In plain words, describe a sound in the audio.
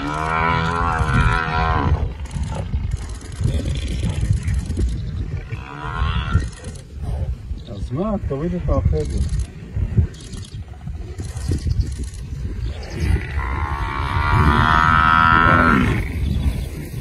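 A buffalo bellows loudly in distress.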